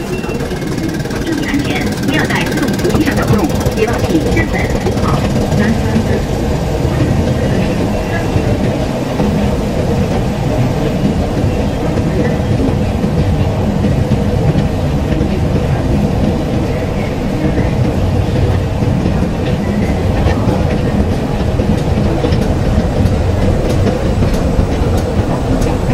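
An escalator hums and rumbles steadily in a large echoing hall.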